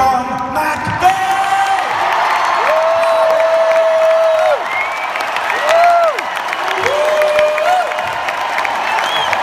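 Fans in a crowd whistle shrilly.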